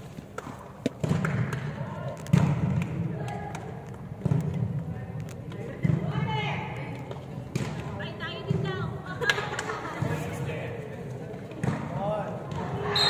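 A volleyball thuds as players pass it back and forth.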